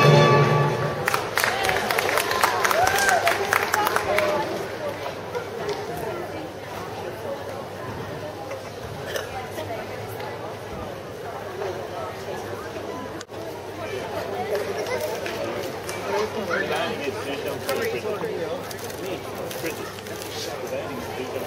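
People murmur and chat in a large echoing hall.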